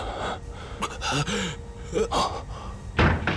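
An elderly man gasps and speaks in a low, strained voice nearby.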